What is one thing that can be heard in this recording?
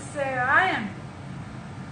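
A woman makes a short, rising vocal sound close by.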